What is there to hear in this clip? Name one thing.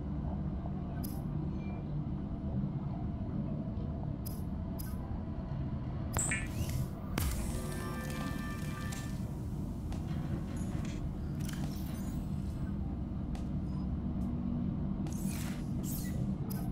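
Soft electronic clicks sound as menu items are chosen.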